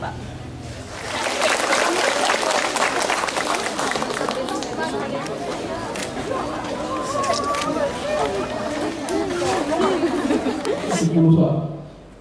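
A crowd of women shouts and cheers outdoors.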